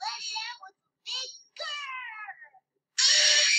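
A cartoon rabbit laughs loudly.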